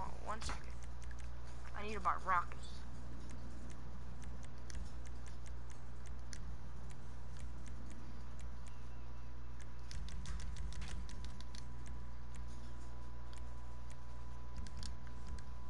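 Short menu clicks tick as options are chosen.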